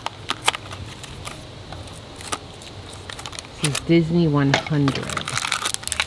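Paper crinkles and rustles in a girl's hands.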